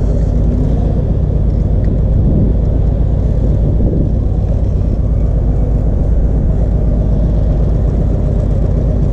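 Wind buffets the microphone.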